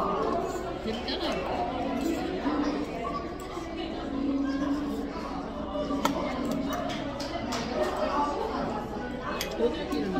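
A metal fork and spoon clink and scrape against a metal pan.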